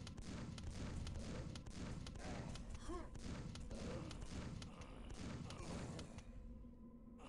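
A weapon fires in a fast, steady stream of sharp shots.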